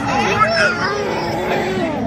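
A toddler babbles.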